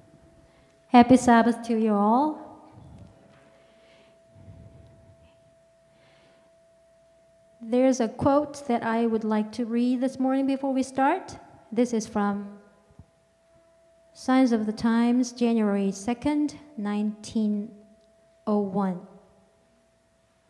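A woman sings through a microphone in a large echoing hall.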